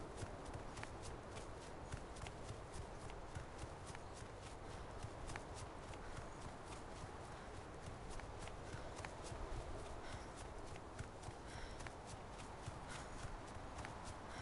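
Footsteps crunch quickly over grass and snow.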